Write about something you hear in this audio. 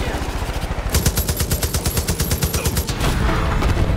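A machine gun fires in a rapid burst.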